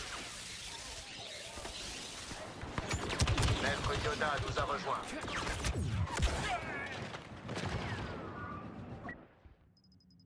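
Blaster guns fire rapidly in a loud, chaotic battle.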